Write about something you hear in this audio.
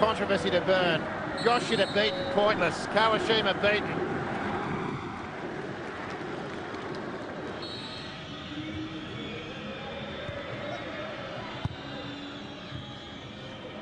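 A large stadium crowd roars and cheers loudly, then settles into a steady murmur.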